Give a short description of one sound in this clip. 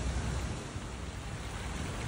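Water trickles gently in a small stream nearby.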